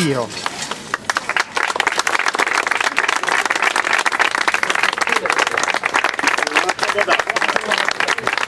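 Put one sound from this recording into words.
A crowd claps and applauds outdoors.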